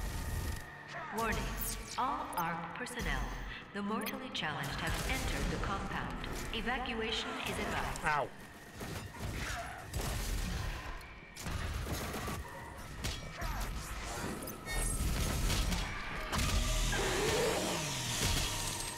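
Heavy gunfire booms and crackles in bursts.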